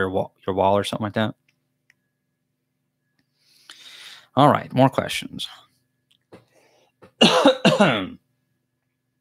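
A young man speaks calmly and close into a microphone, in short bursts.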